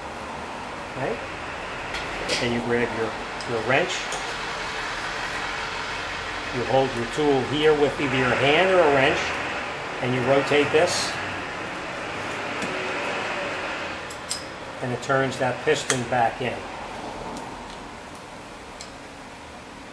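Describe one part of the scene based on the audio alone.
Metal tools clink and tap against metal parts.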